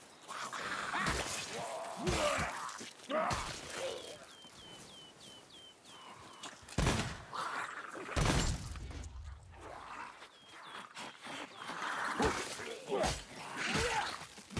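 Snarling creatures screech as they charge.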